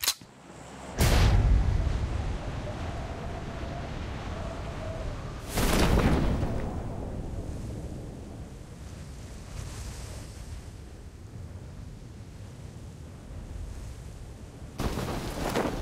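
Wind rushes steadily during a skydive fall.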